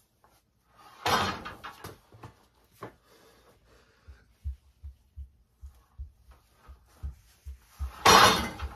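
A man grunts with effort while pulling hard.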